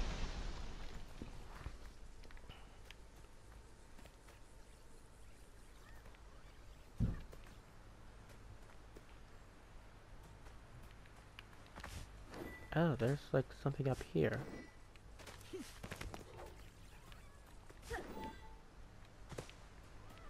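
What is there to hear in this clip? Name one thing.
Footsteps run quickly over grass and rock.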